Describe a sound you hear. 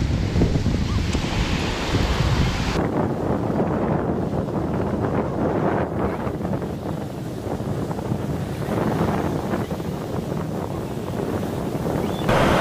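Foamy water rushes and hisses up onto the sand.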